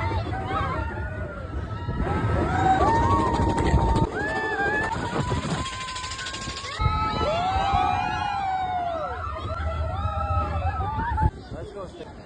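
Riders scream and shriek on a roller coaster.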